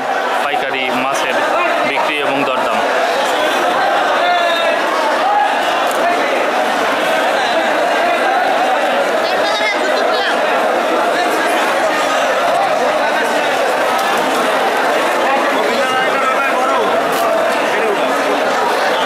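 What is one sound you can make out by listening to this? A dense crowd of men talk and shout all around, close by, echoing in a large hall.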